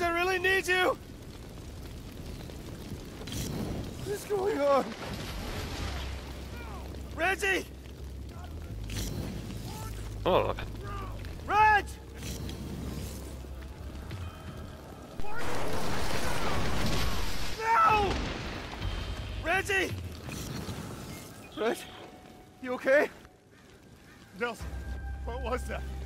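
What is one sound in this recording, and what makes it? Fire crackles and roars nearby.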